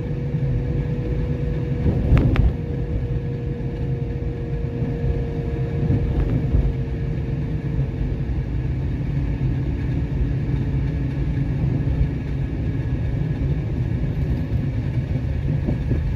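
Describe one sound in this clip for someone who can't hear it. A car's tyres rumble on asphalt as it drives along.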